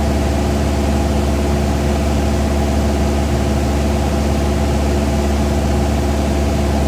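A small plane's propeller engine drones loudly and steadily from close by.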